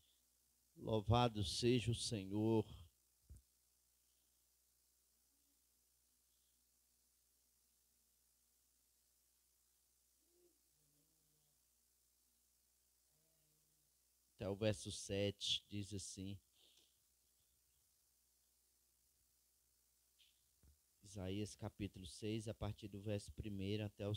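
A man speaks slowly through a microphone, in bursts with long pauses.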